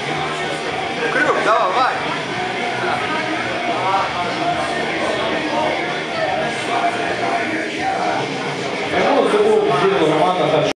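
A crowd chatters and calls out in a large echoing hall.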